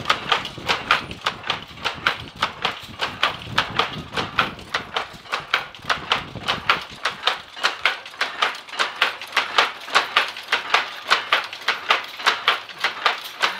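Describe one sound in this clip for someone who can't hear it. A mechanical loom clatters with fast, rhythmic clacks.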